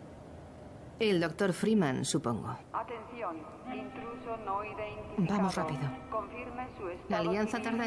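A young woman speaks calmly and warmly.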